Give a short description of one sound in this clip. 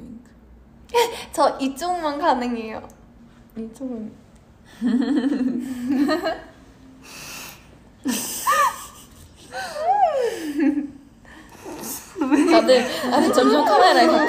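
Young women laugh together.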